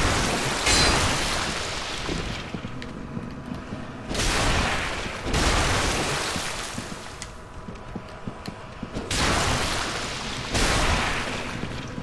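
Heavy weapon blows crash and whoosh in a video game fight.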